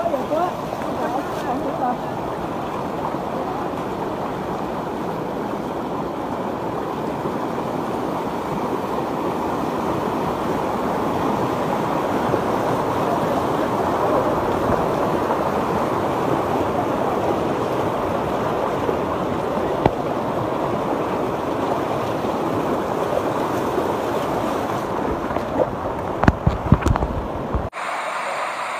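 Muddy floodwater rushes and roars past.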